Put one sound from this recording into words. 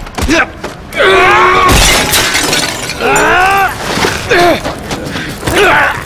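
A man screams loudly in pain.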